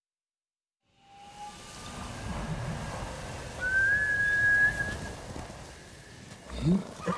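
Wind blows steadily outdoors, rustling leaves.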